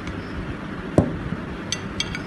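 A piece of bread knocks lightly against a plate.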